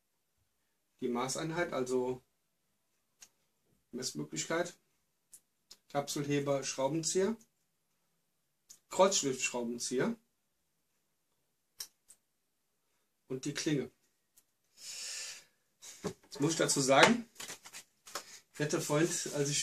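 A man talks calmly, close by, in short bursts with pauses.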